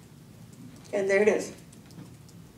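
A woman speaks briefly into a microphone, heard through a loudspeaker in a large room.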